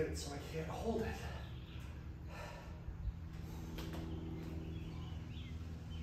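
A kettlebell is set down on the floor with a thud.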